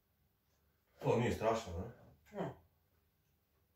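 A young man speaks briefly and calmly close by.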